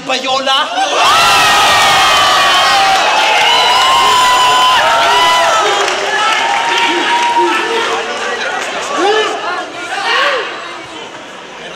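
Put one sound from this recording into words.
A large crowd cheers and roars loudly outdoors.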